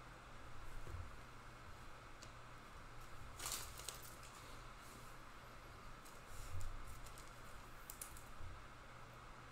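Trading cards and plastic sleeves rustle and click as hands shuffle them.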